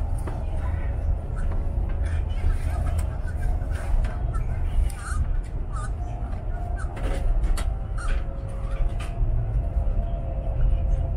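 A train hums with a steady whine from inside the carriage.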